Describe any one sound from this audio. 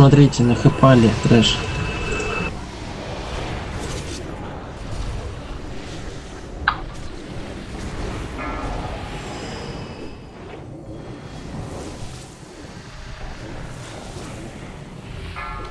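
A dragon's fire breath roars.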